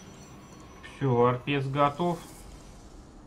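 A man speaks briefly with animation into a microphone.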